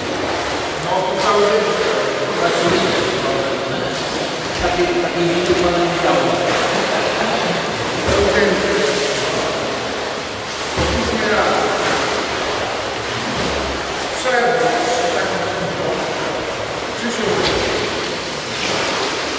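A man calls out loudly, echoing around a large hall.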